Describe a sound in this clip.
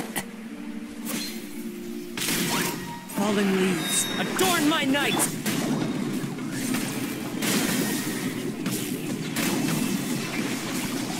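Magic blasts and sword strikes crash in quick bursts.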